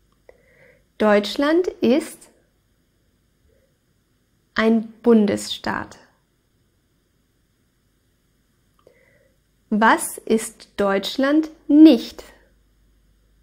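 A young woman speaks clearly and calmly into a close microphone, in short phrases with pauses.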